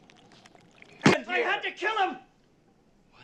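A man speaks urgently, close by.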